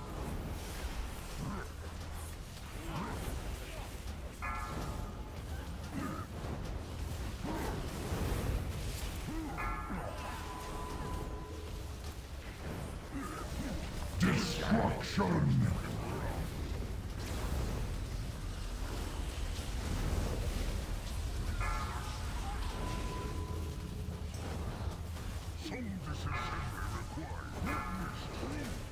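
Magic spells whoosh, crackle and boom in a fast fight.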